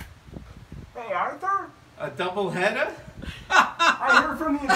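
A middle-aged man laughs and talks with animation close by.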